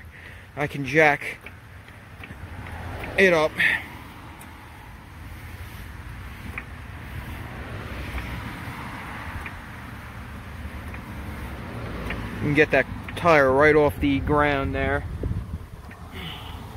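A floor jack is pumped by hand, creaking and clicking as a car lifts.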